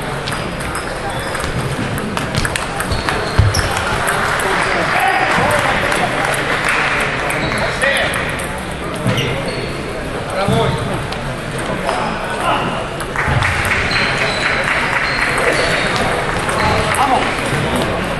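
Ping-pong balls click against paddles and tables.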